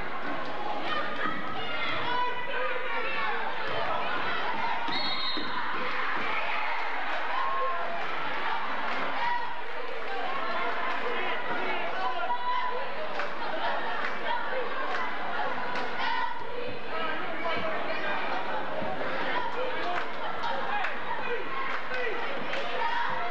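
A large crowd chatters and cheers, echoing in a big hall.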